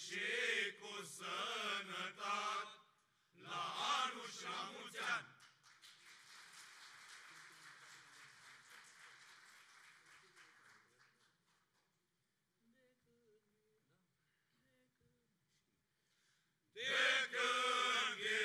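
A choir of men sings together loudly in an echoing hall, pausing between phrases.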